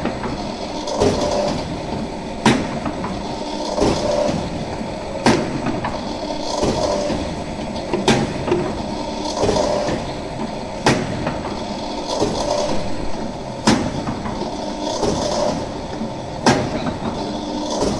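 Wafers clatter as they slide down a metal chute.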